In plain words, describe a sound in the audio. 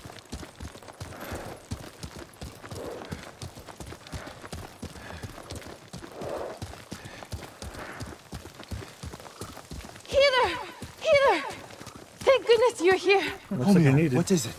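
Horses' hooves clop steadily on a dirt path.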